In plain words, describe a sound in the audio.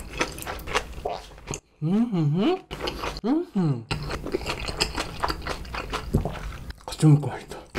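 A man chews food with his mouth closed, close to a microphone.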